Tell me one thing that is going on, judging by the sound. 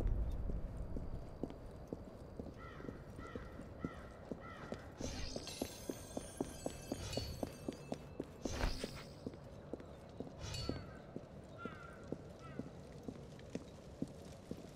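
Footsteps run quickly on a stone floor.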